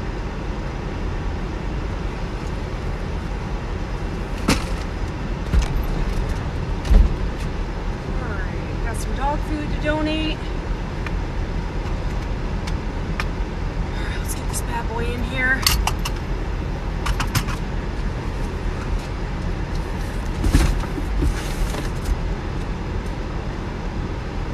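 A car engine idles close by with a low, steady rumble.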